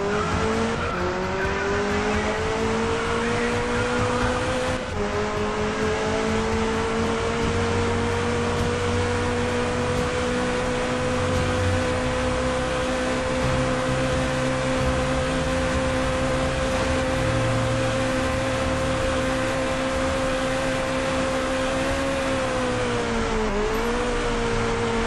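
A car engine roars at high revs, its pitch slowly rising and dipping near the end.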